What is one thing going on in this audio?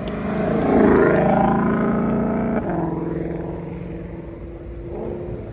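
A sports car engine roars as the car accelerates away.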